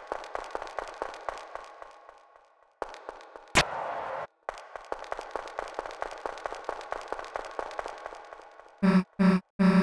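Quick plucked notes of game music play.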